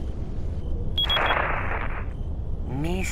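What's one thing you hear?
A radio crackles with static.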